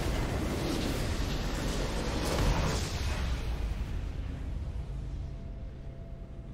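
A deep, booming victory fanfare swells and slowly fades away.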